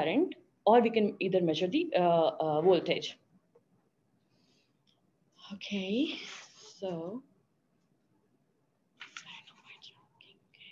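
A young woman speaks calmly into a microphone, with pauses.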